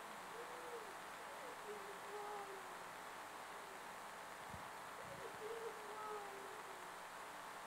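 A person sings softly in a large, quiet hall.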